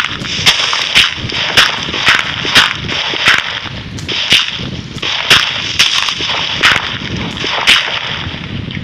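Blocks of dirt crunch in quick bursts as they are dug out in a game.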